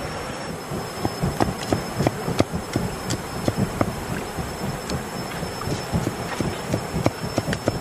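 A cleaver chops rapidly on a wooden board.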